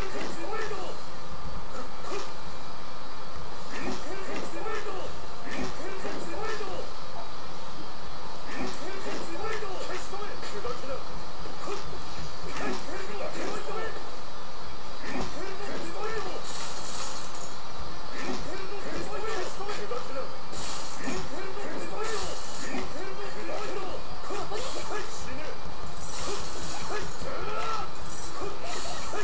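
Fighting game sound effects of hits and slashes crash repeatedly.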